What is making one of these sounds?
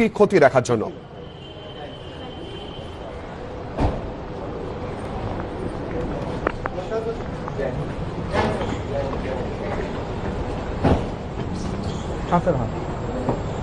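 A group of men talk quietly among themselves outdoors.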